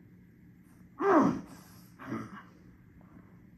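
A young man cries out in pain.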